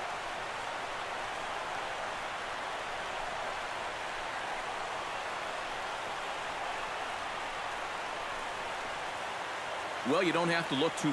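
A stadium crowd cheers in a continuous roar.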